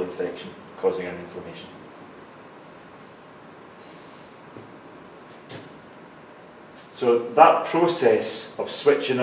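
A man lectures calmly, heard in a room with a slight echo.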